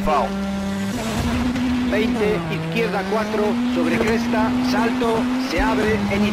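A rally car engine roars as the car speeds away and shifts gears.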